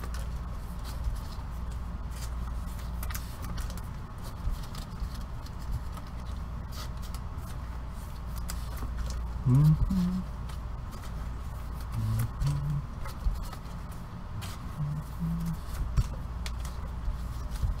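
Plastic wrappers crinkle and rustle as gloved hands handle them.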